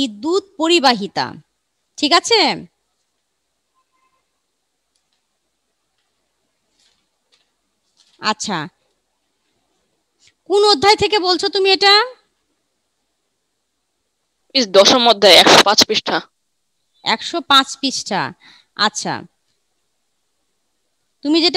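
A woman speaks close to a headset microphone, in short bursts with pauses.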